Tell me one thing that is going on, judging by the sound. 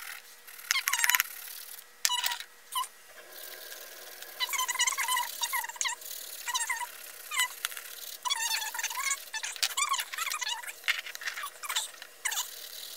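A colored pencil scratches rapidly back and forth across paper, close up.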